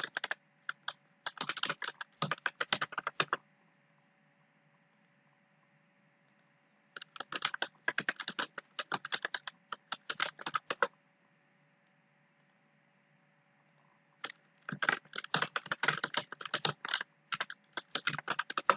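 A keyboard clatters in quick bursts of typing.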